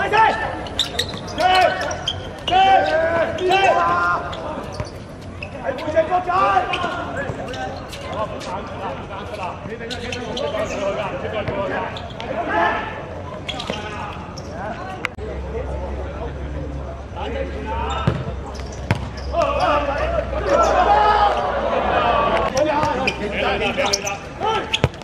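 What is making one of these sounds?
Men shout and call out to each other.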